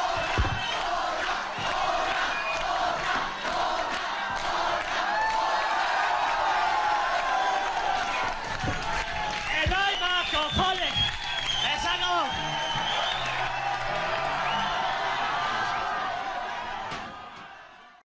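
A large crowd cheers and shouts loudly.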